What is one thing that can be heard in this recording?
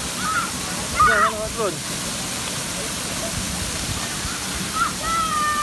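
Water rushes steadily down slides and splashes into a pool.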